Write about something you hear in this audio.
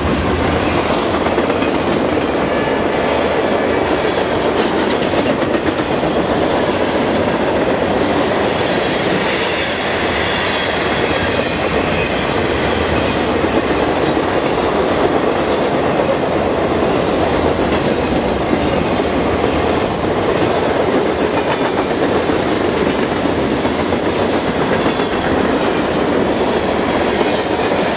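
A freight train rumbles past close by at speed.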